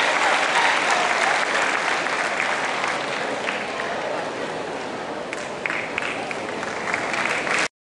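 A large band plays loudly in an echoing hall.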